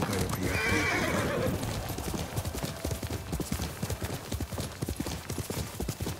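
Horse hooves gallop over grass.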